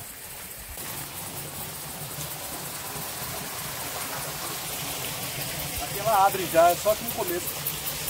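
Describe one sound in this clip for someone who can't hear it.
Tall grass rustles and swishes underfoot as a man walks.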